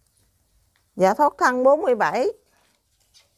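A woman speaks close to a clip-on microphone, with animation.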